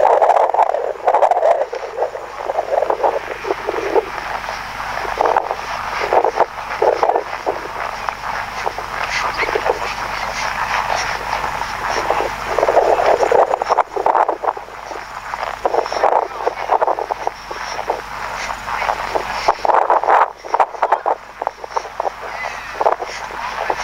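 A horse's hooves thud steadily on a dirt track.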